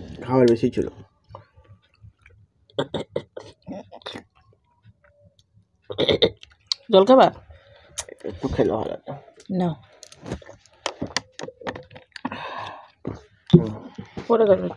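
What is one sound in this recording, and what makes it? A man and a woman chew and smack their lips while eating.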